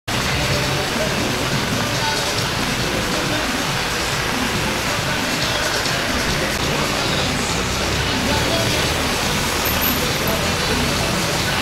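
Heavy rain pours down steadily and splashes on pavement.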